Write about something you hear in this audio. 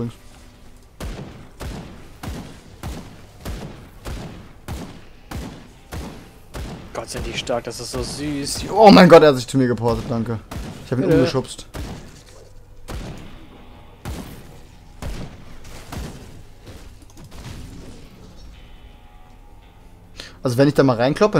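Fire spells whoosh and crackle in quick bursts.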